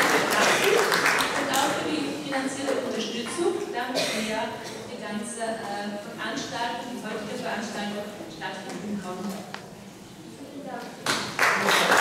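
An older woman speaks calmly through a microphone and loudspeakers.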